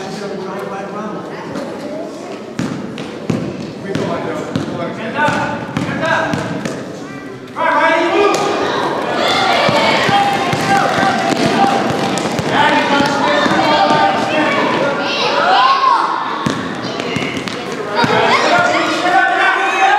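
Adults and children shout and cheer loudly in an echoing hall.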